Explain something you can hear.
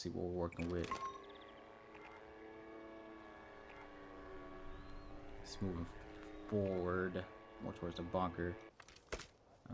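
A small drone hums steadily overhead.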